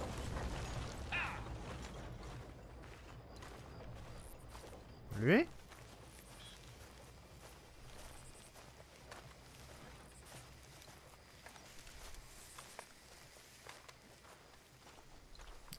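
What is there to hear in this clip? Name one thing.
Boots crunch steadily on a dirt path.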